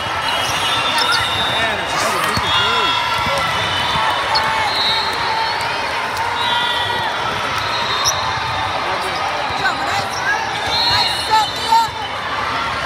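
A volleyball thuds against players' arms.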